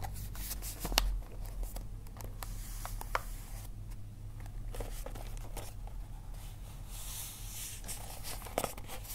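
Fingers tap and knock on a hard tabletop.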